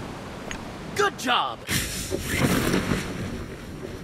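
A parachute snaps open with a loud rustle.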